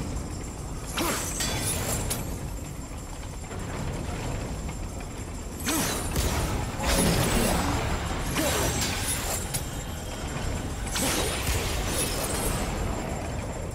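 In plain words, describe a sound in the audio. Magical energy crackles and bursts in sharp whooshes.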